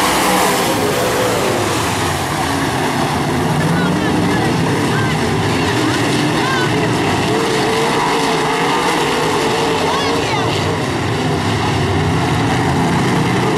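Race car engines roar loudly around a dirt track.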